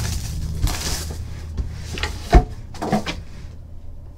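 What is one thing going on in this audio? Plastic wrapping crinkles and rustles as hands tear it.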